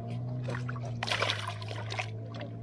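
Water splashes as something is thrown in close by.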